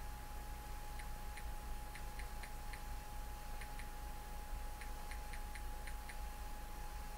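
A phone beeps softly with each key press.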